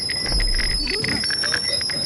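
A small robot beeps and whistles.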